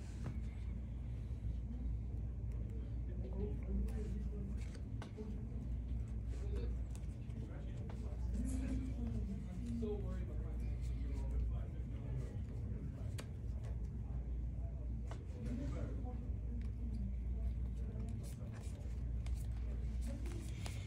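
Playing cards are shuffled and tapped down on a soft mat.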